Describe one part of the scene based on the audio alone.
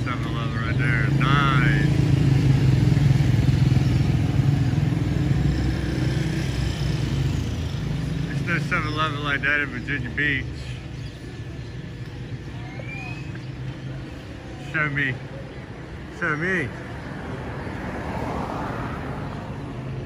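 A vehicle engine hums steadily up close.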